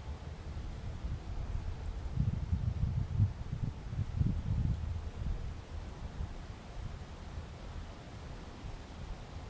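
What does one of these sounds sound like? Wind blows in low gusts outdoors, rumbling against the microphone.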